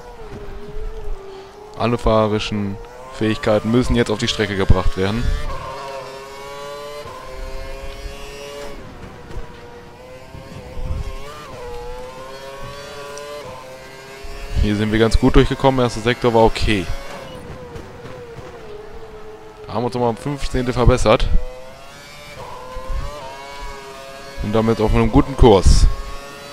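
A racing car engine whines at high revs, rising and dropping in pitch as the gears change.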